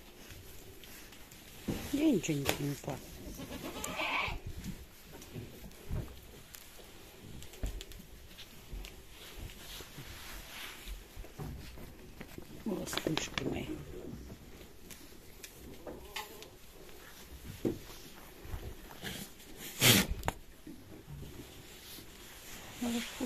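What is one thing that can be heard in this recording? Straw rustles as goats shuffle about.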